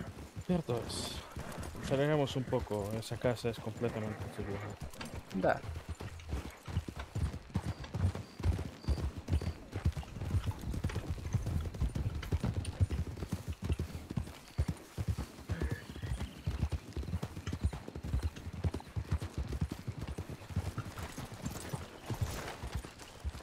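Horses' hooves thud steadily on a dirt path.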